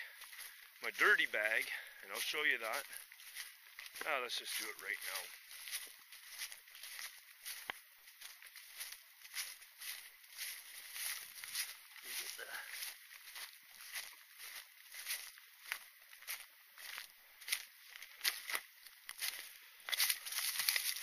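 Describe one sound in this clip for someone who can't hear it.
Footsteps crunch through dry leaves outdoors.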